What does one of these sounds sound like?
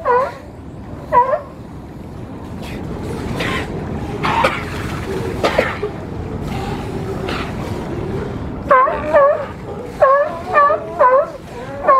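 Water splashes and churns as sea lions swim.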